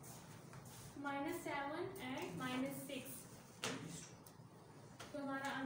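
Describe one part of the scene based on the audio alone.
A woman speaks calmly, explaining as she teaches.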